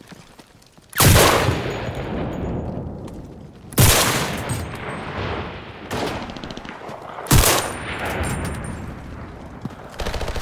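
A rifle fires loud, sharp shots that echo and roll away.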